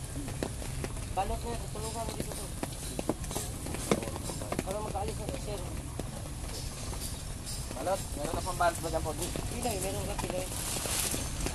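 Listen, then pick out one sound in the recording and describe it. A young woman speaks softly and close.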